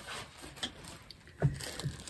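Fabric rustles as a blanket is handled close by.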